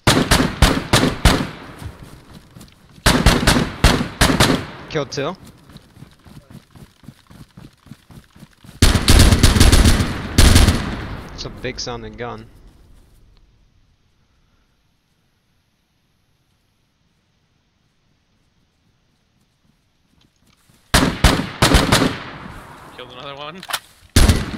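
A rifle fires in quick bursts of loud shots that echo away.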